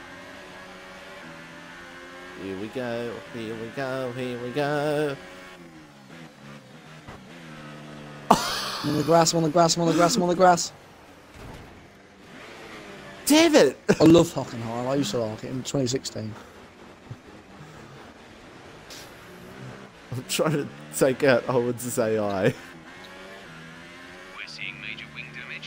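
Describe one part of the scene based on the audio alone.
A racing car engine whines and revs up and down.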